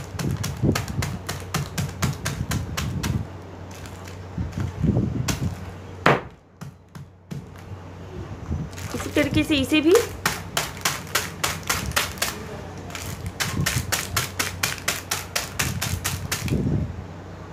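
A stone pounds rapidly on biscuits in a crinkly plastic wrapper.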